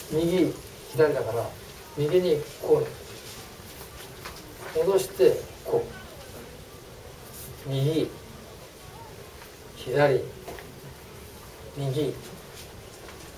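An elderly man speaks with animation into a clip-on microphone, in short bursts with pauses.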